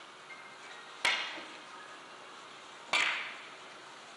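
Billiard balls knock together with loud clicks.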